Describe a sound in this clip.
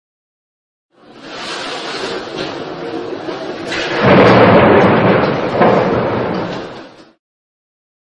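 Heavy sea waves crash and roar.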